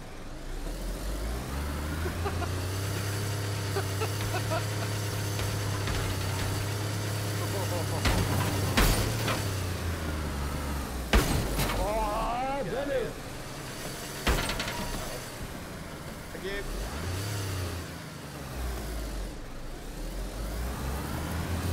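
A car engine hums and revs as a car drives over grass.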